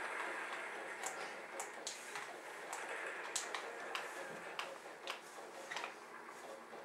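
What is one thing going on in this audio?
Gunshots from a video game crack faintly through a television speaker.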